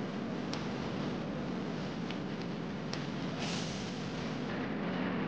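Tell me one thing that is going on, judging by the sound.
Wind blows steadily across an open field outdoors.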